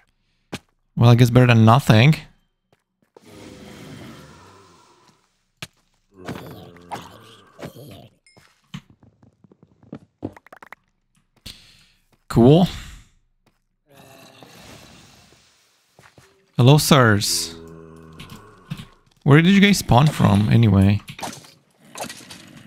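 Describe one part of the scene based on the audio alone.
Zombies groan and growl.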